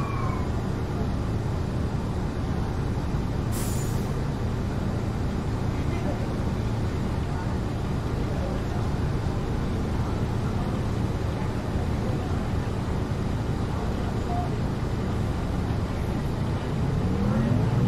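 A bus engine idles with a low, steady rumble.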